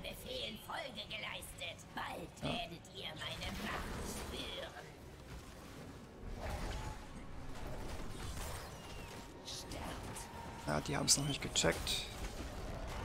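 Magic spells whoosh and crackle in a busy fight.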